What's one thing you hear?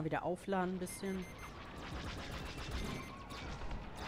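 A warning alarm beeps rapidly.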